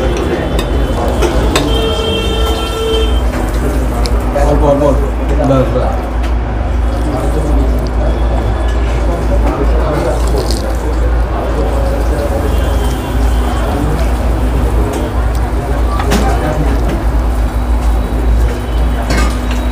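A fork and knife clink and scrape on a plate.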